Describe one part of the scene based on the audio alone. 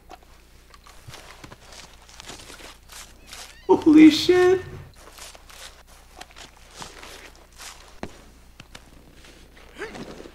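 A knife slices wetly through an animal's hide.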